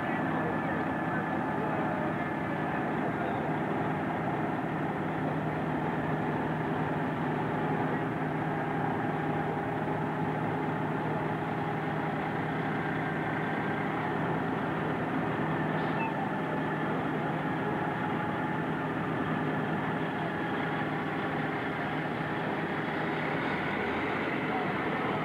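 A large diesel engine idles loudly and steadily nearby.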